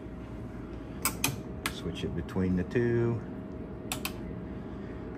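Switches and knobs on test equipment click sharply.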